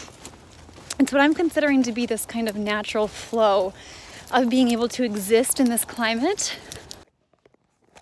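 A young woman speaks close by, a little breathless.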